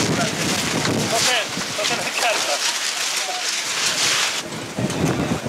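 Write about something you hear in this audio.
Strong wind gusts and flaps tarps outdoors.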